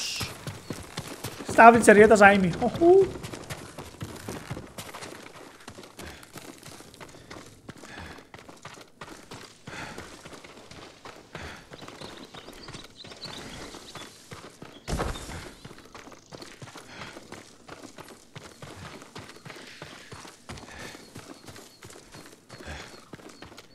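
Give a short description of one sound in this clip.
Footsteps tread on a dirt floor.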